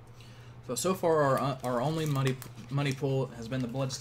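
A foil card pack rustles as a hand pulls it from a cardboard box.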